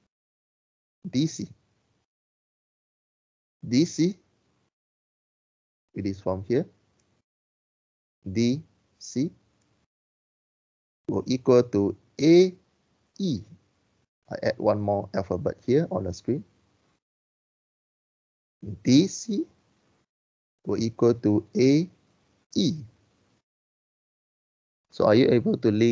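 A man speaks calmly through an online call, in short phrases with long pauses.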